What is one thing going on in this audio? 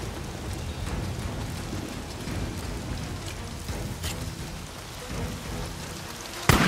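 Footsteps crunch slowly on wet ground.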